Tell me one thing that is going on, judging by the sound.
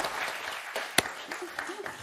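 Two men slap hands in a high five.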